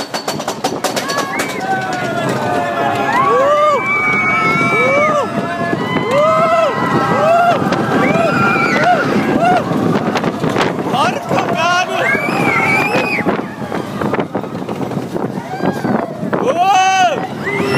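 Young women and girls scream on a roller coaster.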